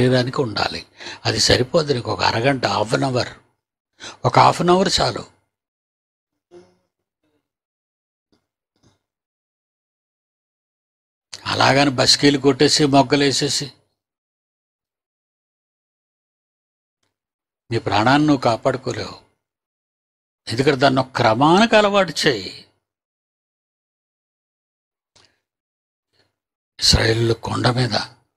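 An elderly man speaks with emphasis into a microphone, pausing between phrases.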